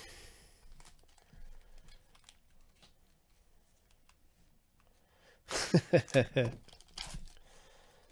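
Foil wrappers crinkle and tear as hands open a pack.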